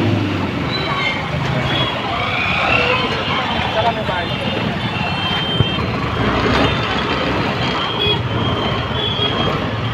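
Motorbike engines idle and rumble nearby.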